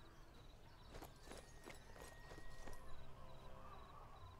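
Footsteps crunch on gravel and dry ground.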